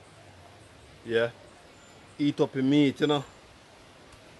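A man speaks briefly and calmly close by, outdoors.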